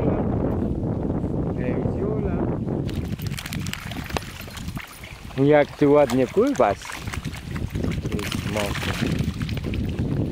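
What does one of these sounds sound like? A dog paddles and splashes through shallow water.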